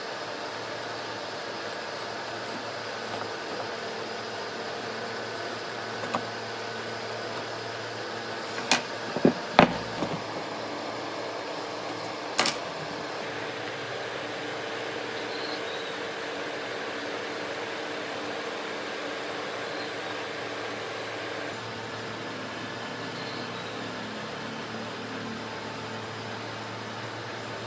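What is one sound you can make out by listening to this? A pencil scratches lightly across wood.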